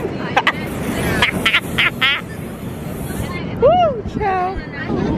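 A young woman laughs and talks cheerfully close by.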